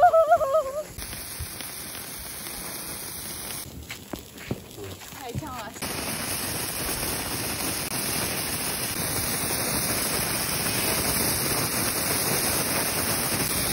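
A sparkler fizzes and hisses steadily.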